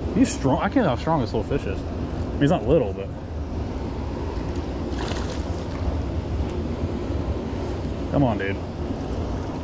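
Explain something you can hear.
Water trickles and splashes steadily nearby.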